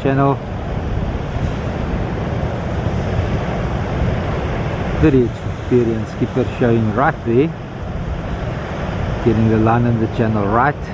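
Waves wash and break steadily onto the shore.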